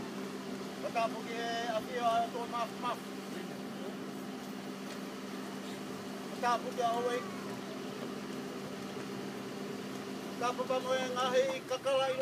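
A man speaks loudly nearby in short bursts.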